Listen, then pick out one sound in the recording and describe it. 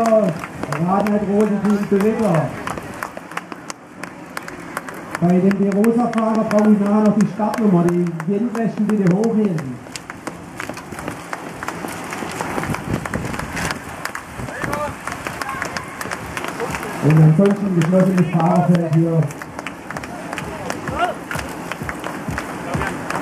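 A pack of racing bicycles whirs and clicks past close by.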